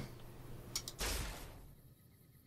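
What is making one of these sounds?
A ray gun fires with a sharp crackling burst.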